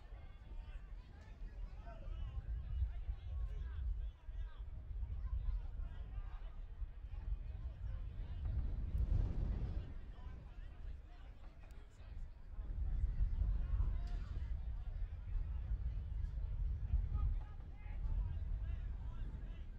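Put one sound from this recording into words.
Young men shout and call to each other in the distance.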